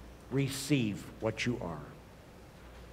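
A man sings a short chant through a microphone in a large echoing hall.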